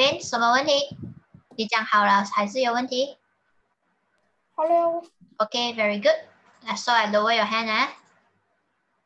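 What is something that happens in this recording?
A woman speaks clearly and with animation through an online call.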